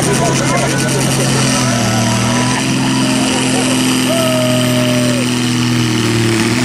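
A pulling tractor's engine roars loudly and steadily at high revs.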